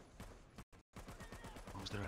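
Laser guns fire in short bursts.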